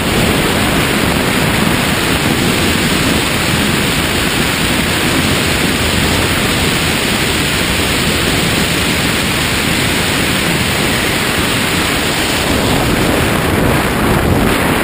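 Strong wind roars steadily past a microphone.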